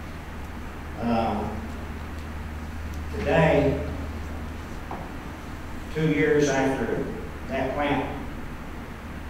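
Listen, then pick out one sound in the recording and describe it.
An elderly man speaks calmly in short phrases into a microphone.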